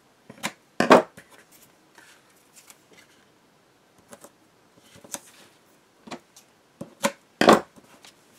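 Scissors snip through tape.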